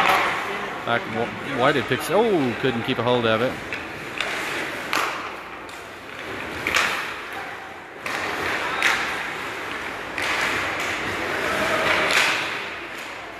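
Skates scrape and carve across ice in a large echoing rink.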